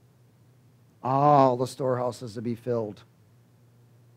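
A middle-aged man speaks with emphasis through a headset microphone.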